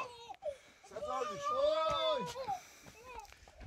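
A young child squeals and laughs nearby.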